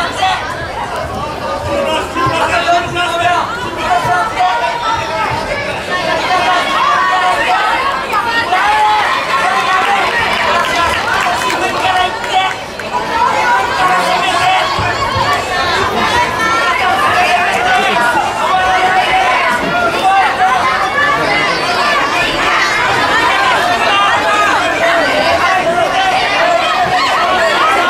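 A crowd of children and adults chatters steadily in a large echoing hall.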